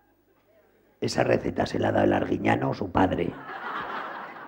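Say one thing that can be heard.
A man speaks loudly in a comic, squawking puppet voice.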